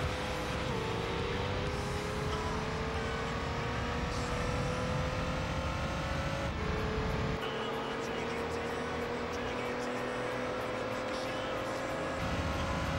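A racing car engine revs high and climbs steadily in pitch, dropping briefly at each gear change.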